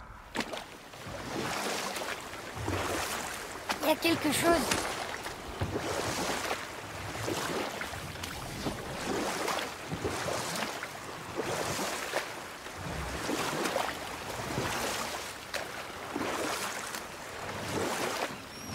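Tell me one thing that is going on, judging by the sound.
Oars splash rhythmically in water as a boat is rowed.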